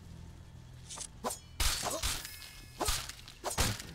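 Blows thump and crack sharply in a quick fight.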